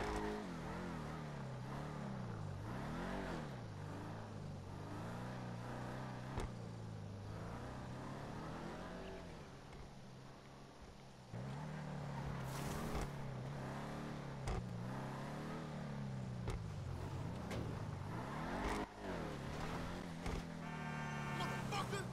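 A car engine roars and revs up and down.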